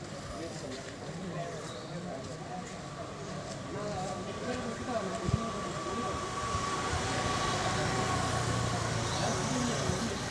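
A group of people murmur in the distance.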